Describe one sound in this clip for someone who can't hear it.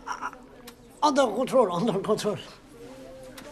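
A woman speaks sharply, close by.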